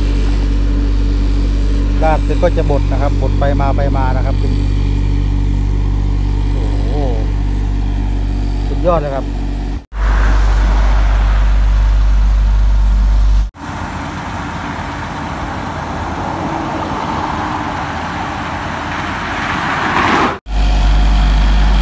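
A road roller's diesel engine rumbles steadily.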